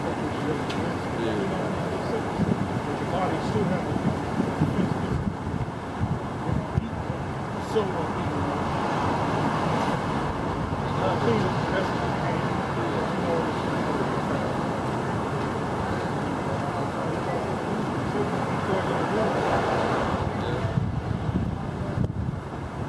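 Traffic rumbles past on a city street.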